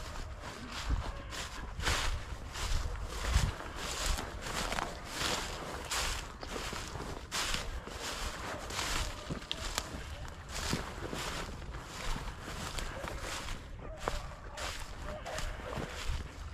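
Footsteps crunch and rustle through dry grass at a steady walking pace.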